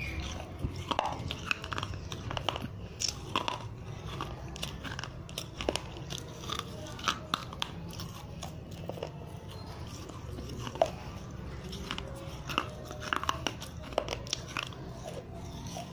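A young person bites and crunches on a crisp snack close to a microphone.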